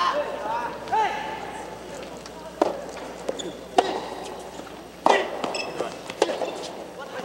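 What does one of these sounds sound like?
A soft tennis ball is struck with a racket, with sharp pops.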